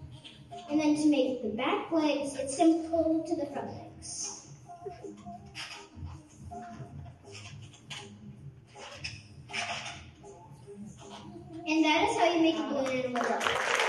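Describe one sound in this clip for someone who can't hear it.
A young girl speaks into a microphone.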